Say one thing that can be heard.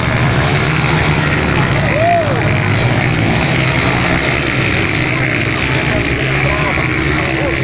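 Dirt bike engines rev and buzz loudly nearby.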